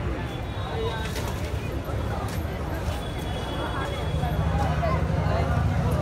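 A crowd of men and women chatters nearby outdoors.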